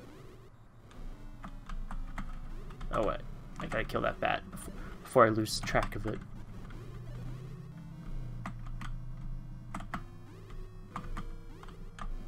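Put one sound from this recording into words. Retro video game bleeps and blips play throughout.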